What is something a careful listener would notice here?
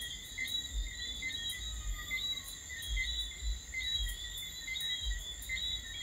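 A pot of water boils and bubbles.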